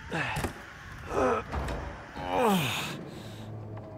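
A heavy wooden door creaks open slowly.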